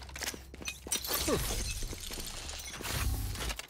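A magical burst whooshes and hisses.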